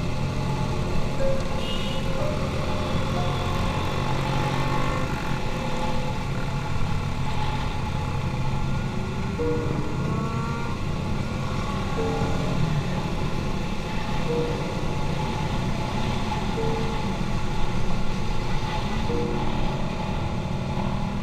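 A motorcycle engine hums steadily up close while riding.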